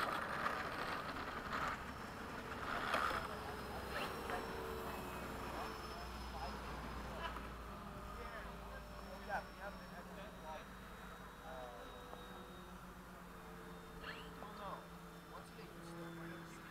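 A small model airplane's motor drones steadily overhead.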